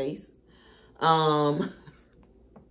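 A young woman sings a drawn-out note.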